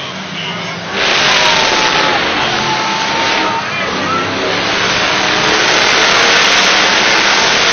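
A monster truck engine revs loudly.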